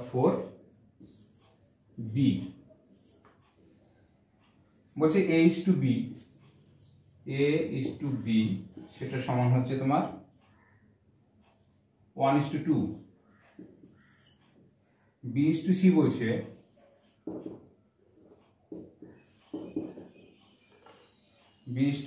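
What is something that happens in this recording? A middle-aged man speaks calmly and clearly, explaining in short bursts with pauses.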